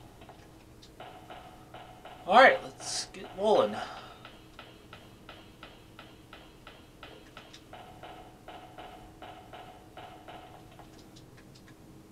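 Footsteps tap steadily and quickly.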